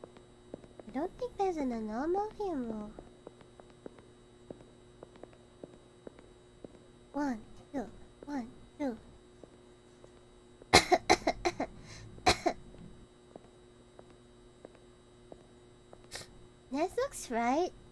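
A young woman talks into a microphone with animation, in short bursts.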